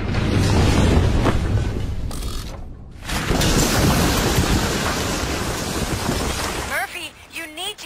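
Concrete crashes down and rumbles loudly as a building collapses.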